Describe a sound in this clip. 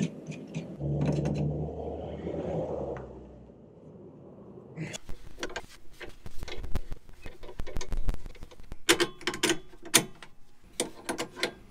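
Metal tools clink and click against a vehicle's suspension parts.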